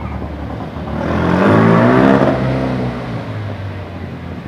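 A car engine roars loudly as it passes close by.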